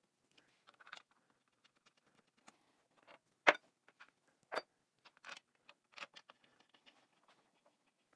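Metal parts clink and knock against a metal housing.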